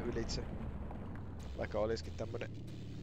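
An explosion bursts with a loud crash.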